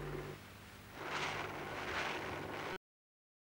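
Footsteps rustle through tall dry grass.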